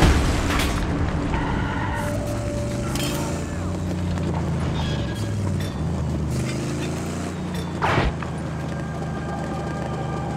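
A car engine roars and revs steadily.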